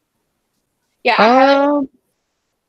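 A young woman speaks briefly through an online call.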